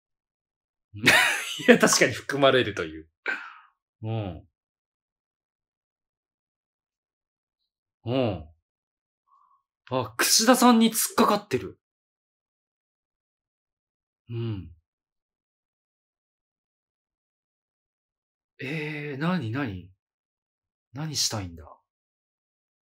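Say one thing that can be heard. A man speaks in short bursts with animation, close to a microphone.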